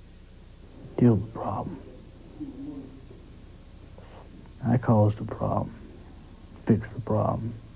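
A young man speaks quietly and hesitantly, close by.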